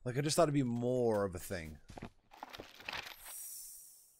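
A man speaks with animation close to a microphone, drawing out his words.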